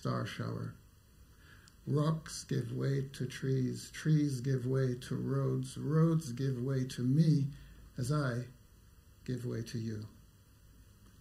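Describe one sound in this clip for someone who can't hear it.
A man reads aloud calmly into a microphone.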